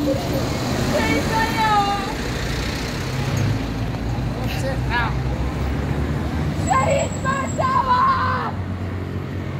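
A woman shouts loudly nearby, outdoors.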